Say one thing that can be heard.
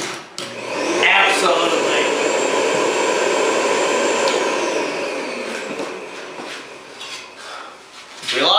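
A jobsite radio plays loudly.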